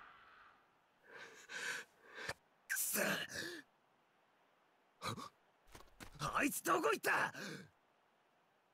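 A young man yells in alarm, loud and close.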